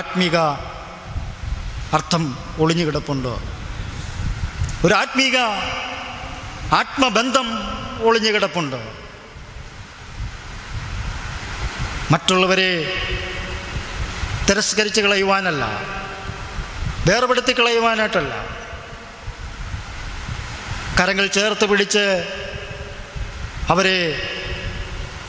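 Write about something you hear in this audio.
A man speaks with feeling into a microphone, in short drawn-out phrases, with pauses between them.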